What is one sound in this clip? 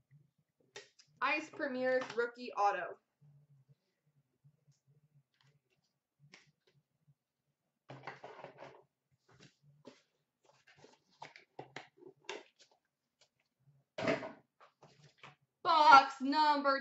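Plastic card packs rustle and tap as a hand handles them.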